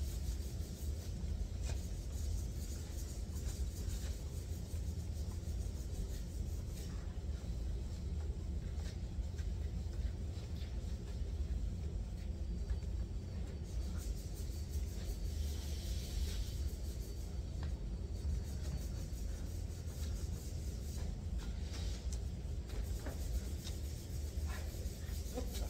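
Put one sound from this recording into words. Spray guns hiss as paint is sprayed.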